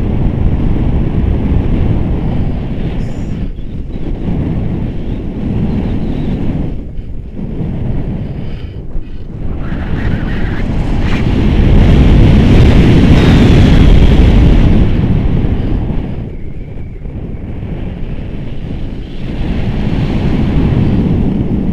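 Wind rushes and buffets loudly against a microphone outdoors, at times swelling.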